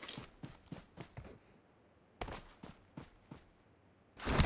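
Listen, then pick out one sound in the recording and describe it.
Footsteps rustle quickly through grass.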